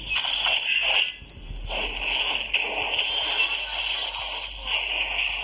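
Fantasy battle effects crackle and burst as spells strike.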